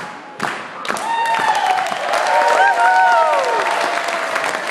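Children sing together in an echoing hall.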